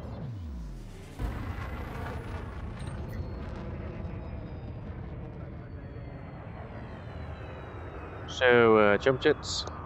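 A spaceship engine hums with a low, steady rumble.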